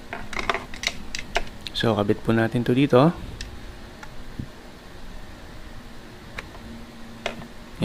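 A plastic plug clicks into a socket.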